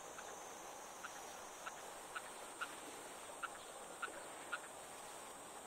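A fishing reel clicks a few times close by.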